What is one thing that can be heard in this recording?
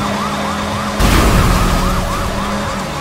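A vehicle crashes with a loud thud.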